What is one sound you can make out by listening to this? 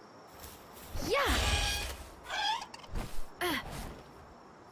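A deer-like creature gives high, gliding cries.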